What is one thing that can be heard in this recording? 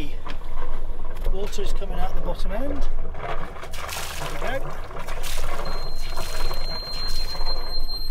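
Water laps gently against a boat's hull.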